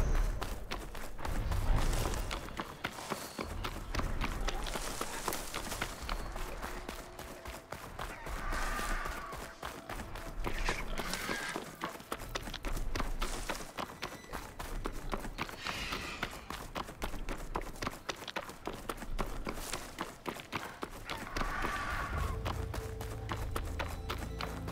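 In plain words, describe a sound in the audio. Quick footsteps run over dirt and gravel.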